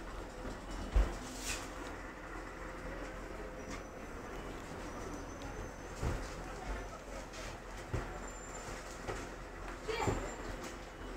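Loose fittings rattle and knock now and then as a bus moves.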